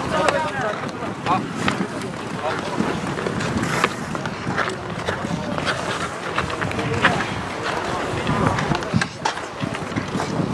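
Skates scrape and clack on the ice.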